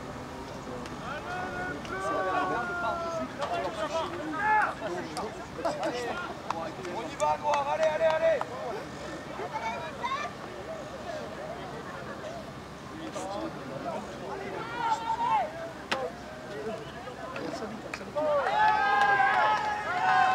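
Young men shout calls to each other outdoors.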